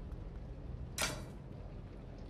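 Metal scissors clatter down onto a counter.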